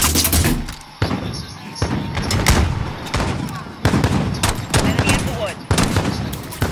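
Gunshots bang out sharply, several times.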